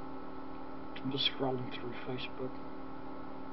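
A man speaks briefly and quietly into a nearby microphone.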